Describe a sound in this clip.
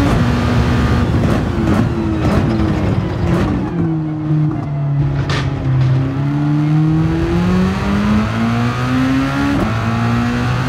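A racing car engine drops in pitch as the car brakes hard and then climbs again as it speeds up.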